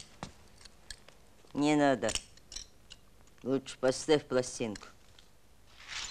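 Glass shards clink as they are gathered by hand.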